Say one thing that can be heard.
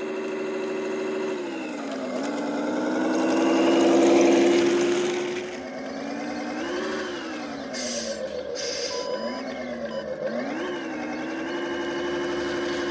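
A model truck's loudspeaker plays a synthesized diesel semi-truck engine revving up and down.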